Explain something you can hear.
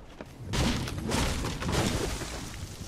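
A metal ammo box clatters open as it is searched.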